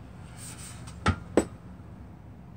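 A metal case knocks twice as it is turned over by hand.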